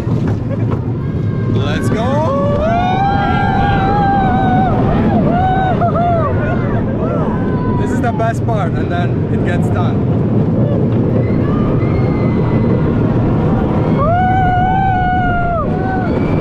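A roller coaster rumbles and rattles along its track.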